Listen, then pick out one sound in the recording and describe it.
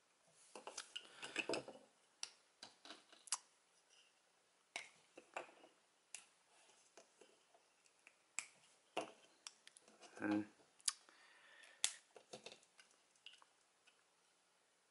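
Small plastic parts click and snap together close by.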